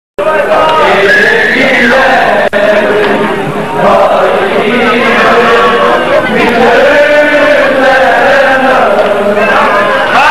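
A large crowd of men and women chants and sings loudly together.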